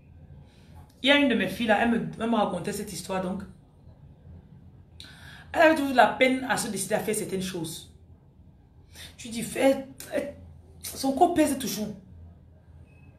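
A woman speaks close to a microphone, with emotion and pauses.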